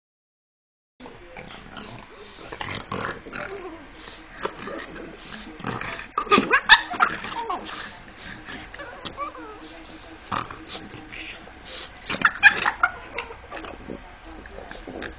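A dog snuffles and whines close by.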